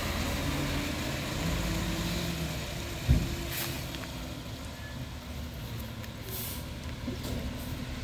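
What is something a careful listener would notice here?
A garbage truck drives off, its engine fading.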